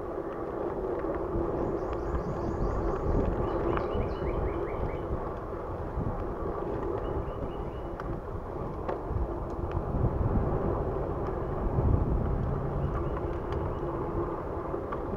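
Bicycle tyres roll and rumble over a paved path.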